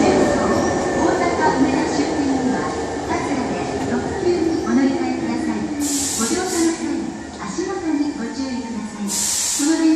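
Train brakes squeal and hiss as the train comes to a stop.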